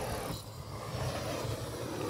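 A spray bottle hisses as it squirts liquid.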